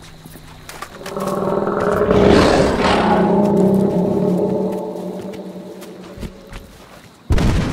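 A crocodile growls loudly.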